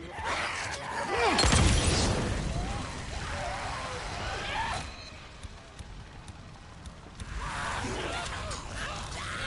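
Creatures shriek and snarl.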